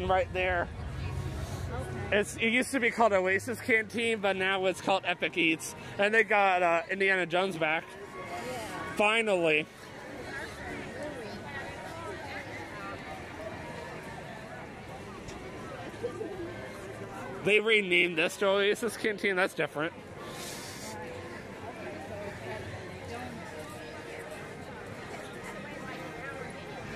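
A crowd murmurs and chatters in the background outdoors.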